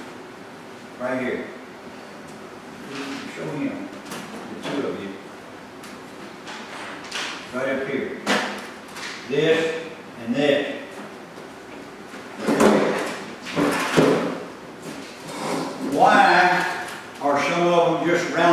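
A man talks calmly in a room with a slight echo.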